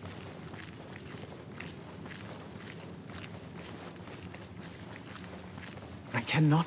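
Footsteps crunch slowly on a rocky floor.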